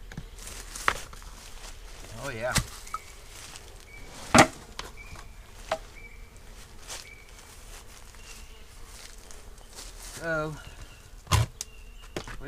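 Sharp knocks sound now and then.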